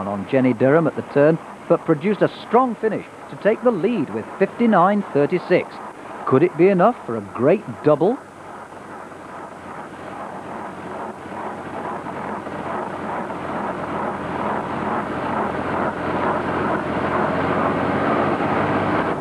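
A racing bicycle whirs along a road at speed.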